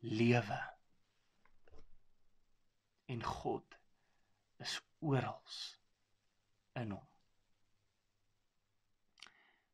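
A young man speaks calmly in short phrases, close to a microphone.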